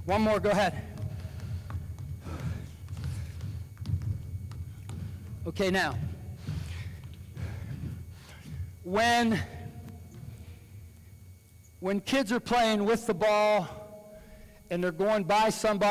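A man calls out loudly in a large echoing hall.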